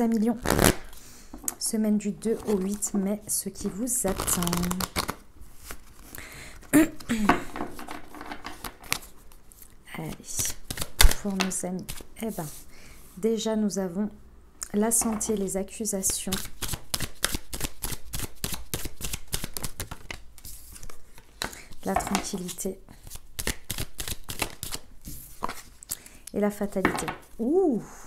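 A deck of playing cards is shuffled with quick, papery flicks.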